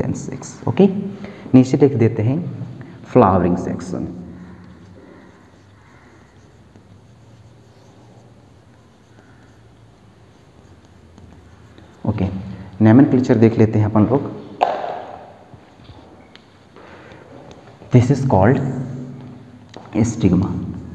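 A young man speaks clearly into a clip-on microphone, explaining.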